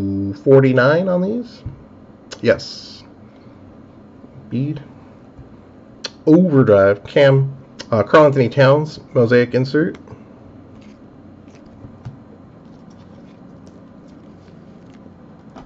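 Trading cards rustle and slide as hands flip through them.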